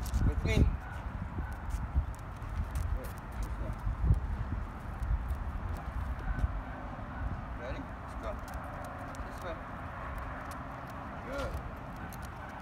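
A man gives short commands to a dog outdoors.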